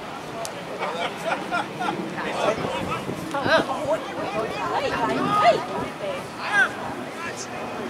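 Several men shout and call out to each other outdoors.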